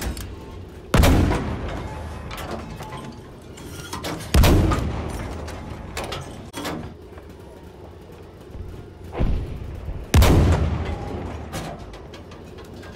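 A tank cannon fires loud booming shots that echo away.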